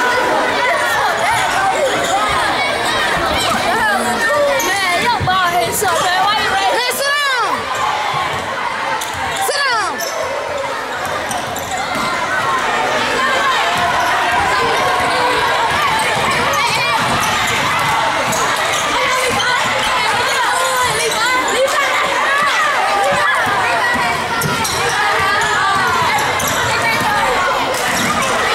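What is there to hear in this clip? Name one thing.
A crowd chatters and cheers loudly in an echoing gym.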